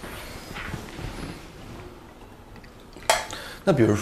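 Tea trickles softly as it is poured into a cup.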